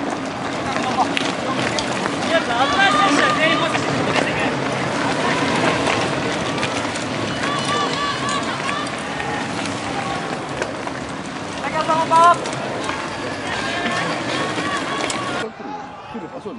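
Spectators shout and cheer nearby.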